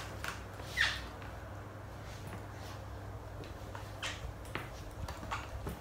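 Boot heels knock on a hard floor.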